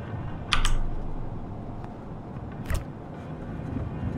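A refrigerator door clicks open.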